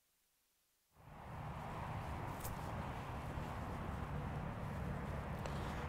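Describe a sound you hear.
An elderly man speaks calmly and close by, outdoors.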